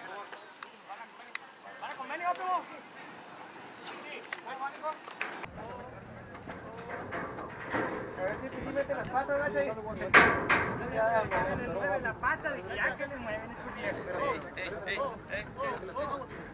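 Men talk and call out loudly outdoors.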